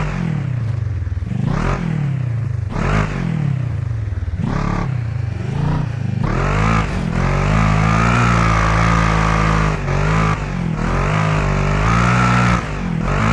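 Tyres crunch and skid on dirt.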